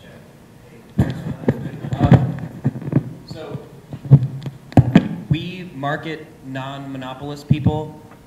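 A young man speaks into a handheld microphone, heard through a loudspeaker.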